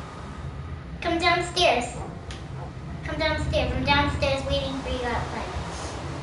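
A young girl talks excitedly, close to a microphone.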